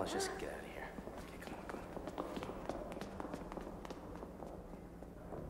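Footsteps hurry along a hard floor.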